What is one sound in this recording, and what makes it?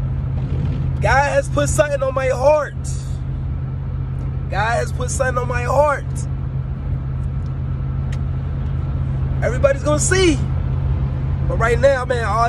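A young man sings with animation close to a microphone.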